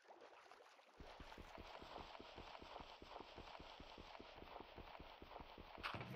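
A pickaxe chips rapidly and steadily at stone.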